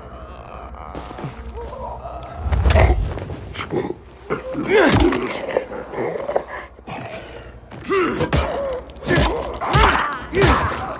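Zombies growl and snarl close by.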